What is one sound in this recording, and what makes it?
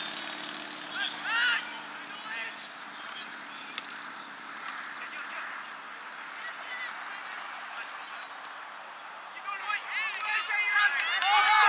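Men and women on the sidelines shout and cheer outdoors.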